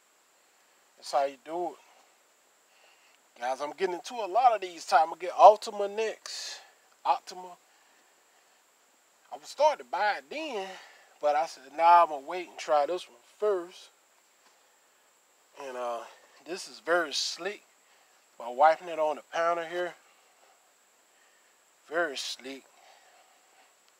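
A man speaks calmly close by, in short bursts with pauses.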